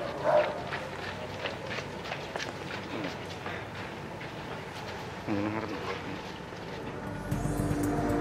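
Footsteps shuffle quickly on paving.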